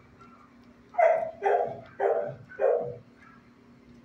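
A dog barks four times close by.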